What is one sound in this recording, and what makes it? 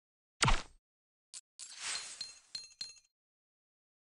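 Small objects shatter and clatter in quick bursts.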